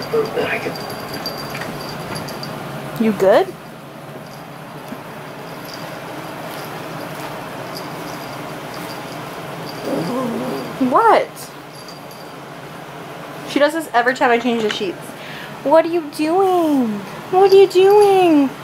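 A small dog rolls and wriggles on rustling bedding.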